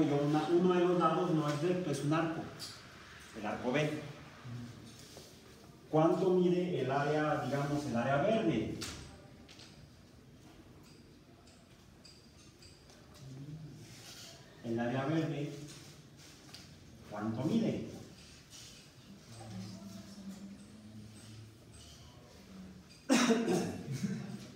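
A man speaks calmly and clearly nearby, with pauses.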